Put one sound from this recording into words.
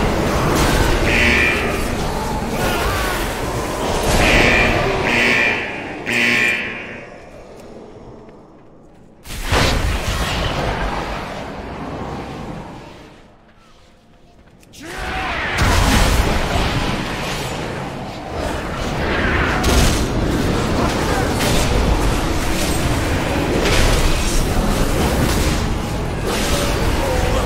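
Game spells and blows crash and whoosh in a fight.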